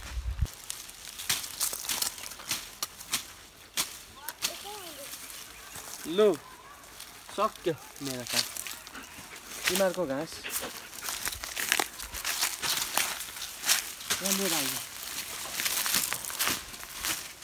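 A stick scrapes and rustles through grass.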